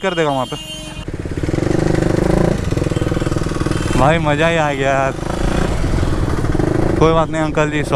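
A motorcycle engine rumbles as the motorcycle rides along a street.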